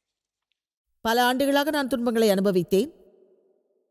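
A middle-aged woman speaks calmly into a microphone in a large hall.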